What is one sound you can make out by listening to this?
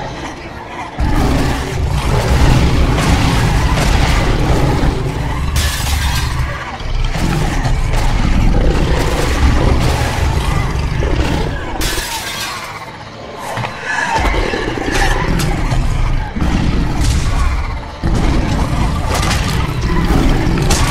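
A large wolf growls and snarls.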